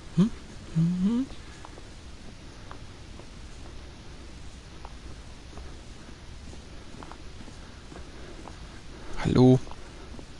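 A young man speaks briefly and with animation into a close microphone.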